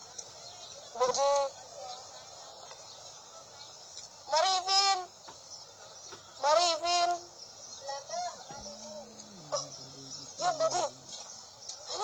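A young boy speaks nearby in short bursts.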